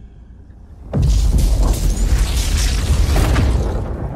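An energy beam crackles and roars loudly.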